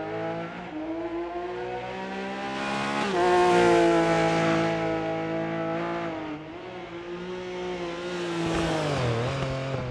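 A rally car engine roars at high revs as the car speeds past.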